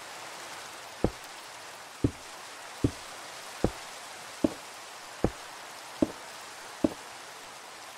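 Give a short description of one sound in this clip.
Blocks are placed with sharp, evenly spaced clicks.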